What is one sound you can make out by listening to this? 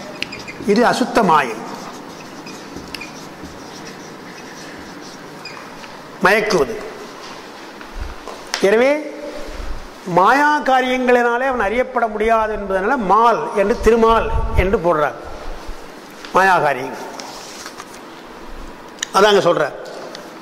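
An elderly man recites verses in a chanting voice through a microphone.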